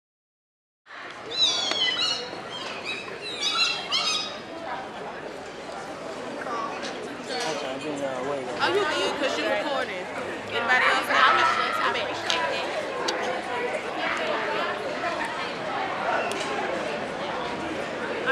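A group of young women chant loudly together outdoors.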